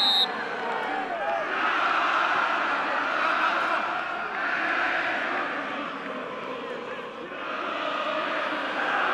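A large crowd cheers and chants steadily in an open stadium.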